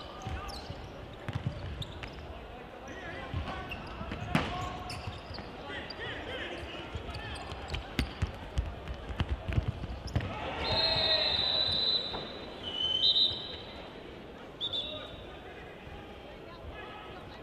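A crowd murmurs throughout in a large hall.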